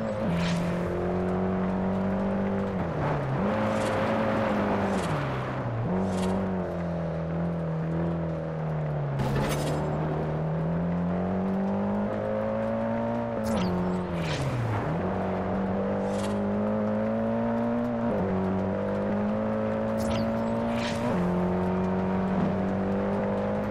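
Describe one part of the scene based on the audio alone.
A car engine revs loudly, rising and dropping with each gear change.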